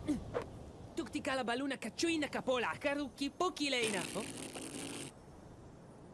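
A young girl talks with animation.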